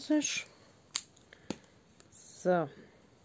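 A plastic tray taps against a hard surface.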